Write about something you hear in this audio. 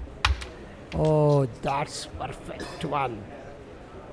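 A striker clacks against carrom pieces on a wooden board.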